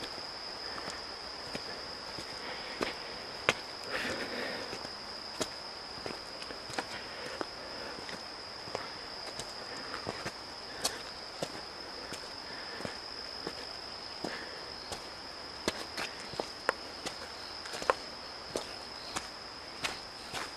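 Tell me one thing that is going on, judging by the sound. Footsteps crunch slowly on a stone path outdoors.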